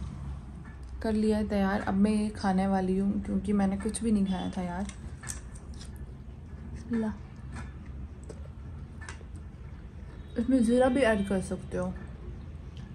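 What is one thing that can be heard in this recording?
A young woman talks calmly close to the microphone.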